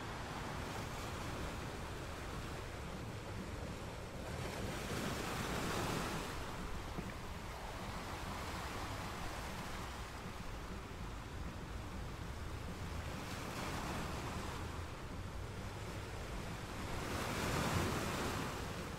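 Ocean waves break and crash against rocks, swelling and fading in slow surges.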